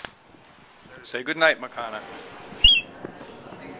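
An albatross gives a loud, wavering call close by.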